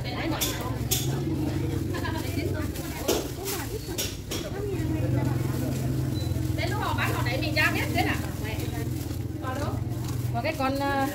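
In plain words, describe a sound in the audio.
A motorbike engine hums as it passes by.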